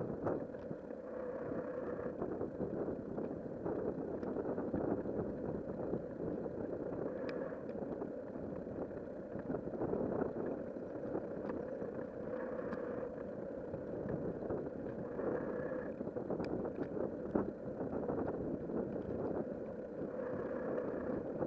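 Wind rushes steadily past a microphone while moving outdoors.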